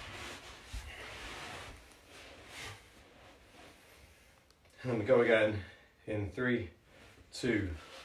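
A cushion rustles as a man shifts it on a carpet.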